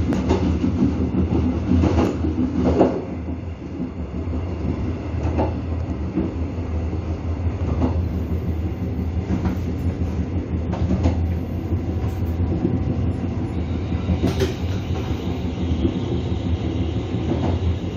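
A train rumbles along the track.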